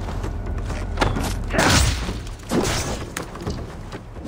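Axe blows strike and clash sharply.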